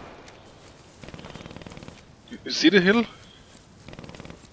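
Footsteps crunch over grass and dirt.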